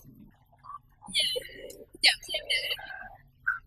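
A girl laughs.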